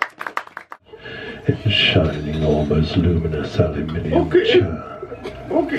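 An elderly man speaks closely into a microphone.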